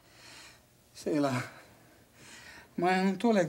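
A young man speaks close by in a troubled voice.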